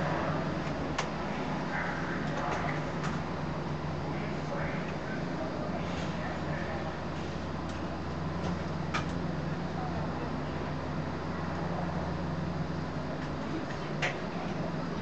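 Train controls click sharply now and then.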